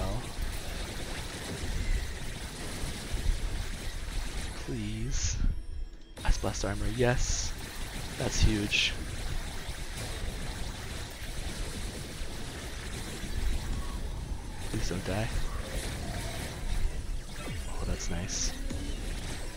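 Game spell effects crackle and blast in rapid bursts.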